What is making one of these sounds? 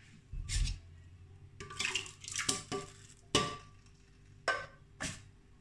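A metal can knocks against a glass blender jar.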